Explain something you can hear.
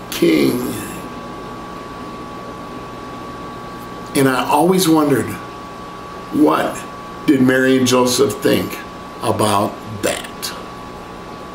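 An older man speaks calmly and close by, in short phrases with pauses.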